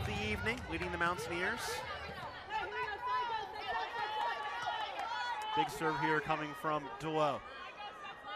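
Young women shout with excitement.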